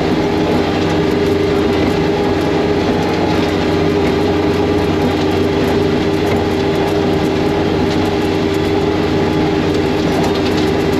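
Snow sprays and hisses against a snowmobile.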